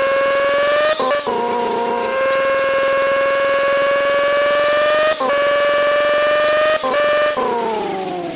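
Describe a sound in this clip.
A car engine briefly drops and climbs again with each gear change.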